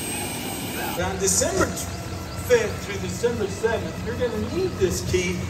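An elderly man speaks cheerfully into a microphone outdoors.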